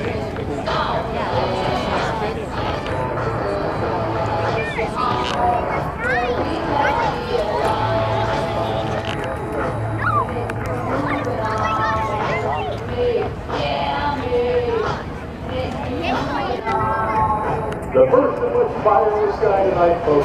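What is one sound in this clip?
Birds call overhead.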